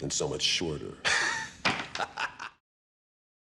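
A man laughs loudly and wildly.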